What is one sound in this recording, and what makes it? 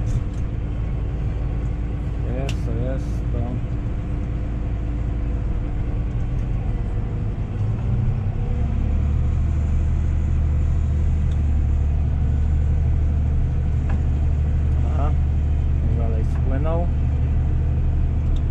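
A tractor engine rumbles steadily from inside the cab, growing louder and deeper as it pushes forward.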